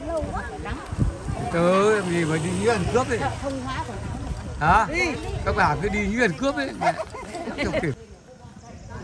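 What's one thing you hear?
Several women chat with animation close by, outdoors.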